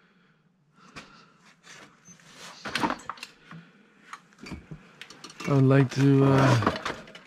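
Metal and plastic objects clatter and rustle as a hand rummages through them.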